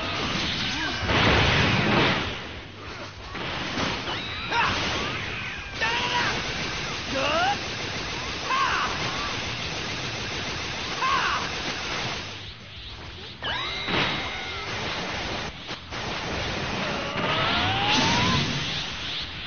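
Loud rushing whooshes surge as a character powers up.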